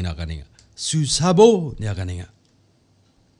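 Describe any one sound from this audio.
A middle-aged man speaks with animation into a microphone, close by.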